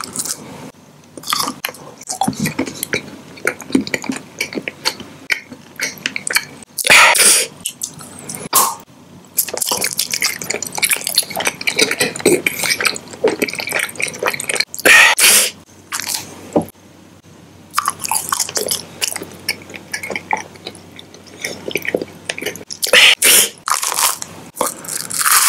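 A man whispers and murmurs very close to a microphone.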